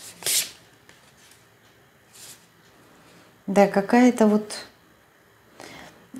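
Cards rustle and slide on a table.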